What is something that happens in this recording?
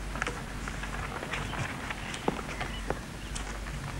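Papers rustle as they are shuffled.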